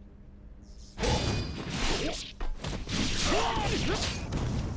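Metal crashes and booms loudly.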